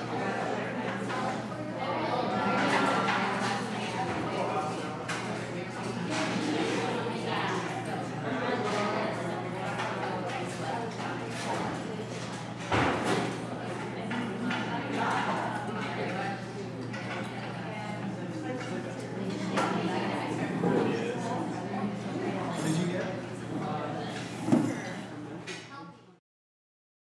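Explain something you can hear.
A crowd of men and women chatter at once.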